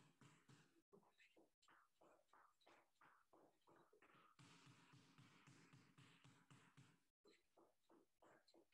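A basketball bounces rhythmically on a hard floor.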